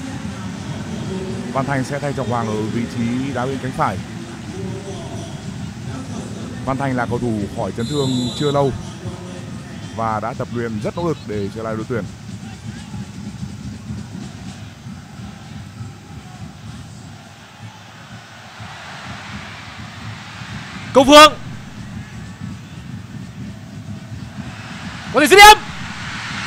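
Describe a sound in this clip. A large stadium crowd murmurs and roars, swelling loudly as an attack nears goal.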